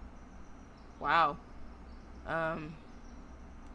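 A young man speaks briefly into a headset microphone, with an expressive voice.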